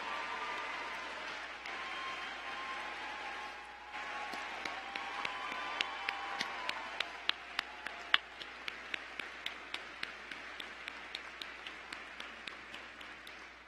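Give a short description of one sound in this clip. A large crowd cheers and whoops in a big echoing hall.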